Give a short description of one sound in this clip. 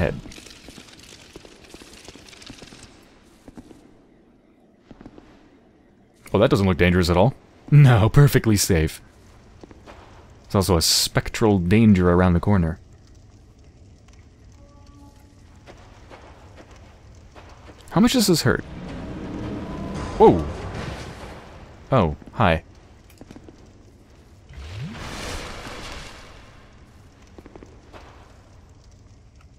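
Armoured footsteps run across a stone floor.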